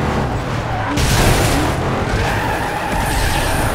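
Tyres screech as a car drifts around a corner.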